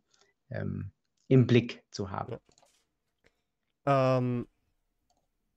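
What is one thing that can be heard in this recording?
A man speaks through a microphone on an online call, in short calm phrases.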